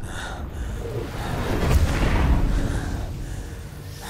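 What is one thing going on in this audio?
A monster roars loudly and deeply.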